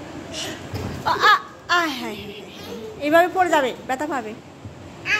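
Young children shriek and squeal with laughter close by.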